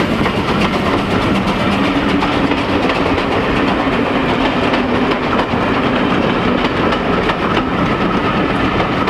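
A steam locomotive chuffs loudly as it pulls away.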